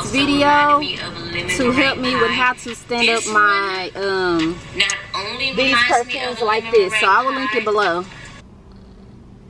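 A young woman talks with animation through a small phone speaker.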